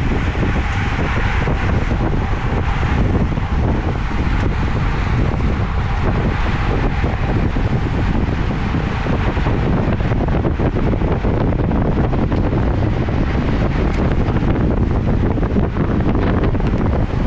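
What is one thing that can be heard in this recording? Bicycle chains and freewheels tick.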